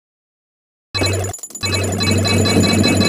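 Coins jingle and clink as they are collected.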